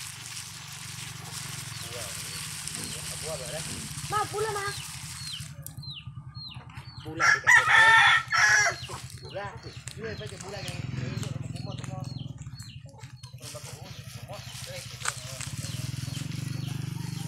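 Grains pour and patter into a pan of liquid.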